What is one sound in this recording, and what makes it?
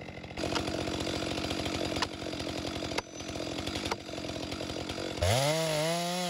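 A chainsaw engine idles with a rapid chugging putter.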